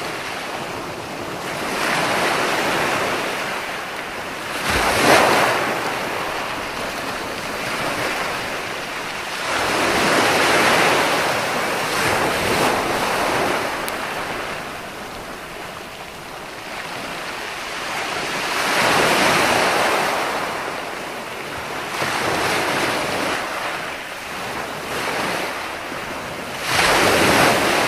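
Foaming surf hisses as it runs up the shore.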